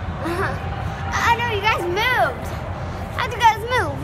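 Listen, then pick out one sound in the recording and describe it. A young girl squeals and laughs excitedly.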